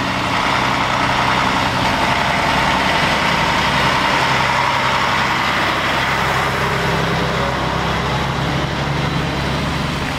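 A heavy truck engine rumbles steadily close by as the truck creeps past.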